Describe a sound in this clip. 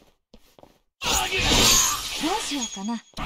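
A magical burst whooshes and shimmers.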